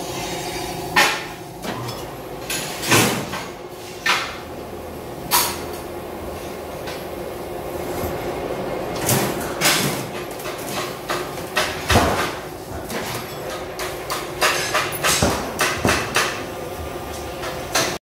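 Metal parts clank against a steel mould.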